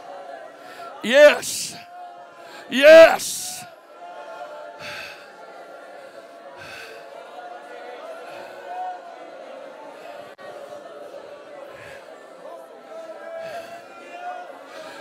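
An older man speaks through a microphone and loudspeakers in an echoing hall.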